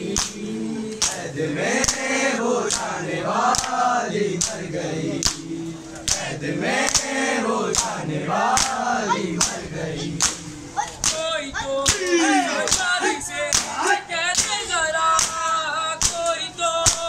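Hands slap bare chests in a steady rhythm.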